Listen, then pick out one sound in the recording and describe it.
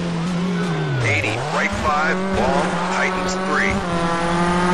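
Tyres squeal on asphalt as a rally car slides through a bend.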